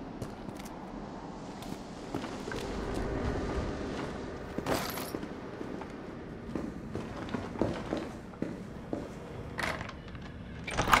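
Footsteps thud across a hard floor.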